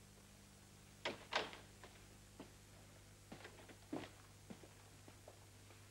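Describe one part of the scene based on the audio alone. Footsteps thud on a hard floor as several people walk away.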